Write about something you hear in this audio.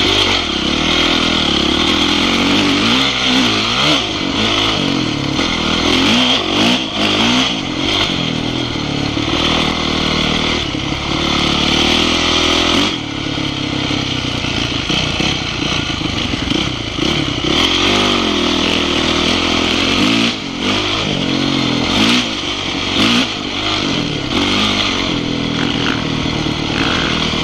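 A dirt bike engine revs up and down as it rides a dirt trail.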